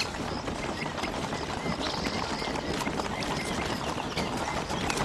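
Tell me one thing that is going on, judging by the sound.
A group of people trudges along on foot, footsteps shuffling on dirt.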